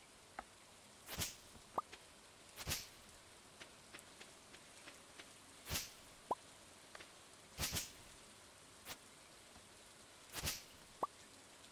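A scythe swishes through grass in short strokes.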